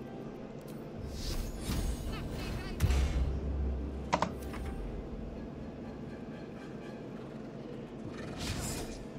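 Fantasy battle sound effects whoosh and thud.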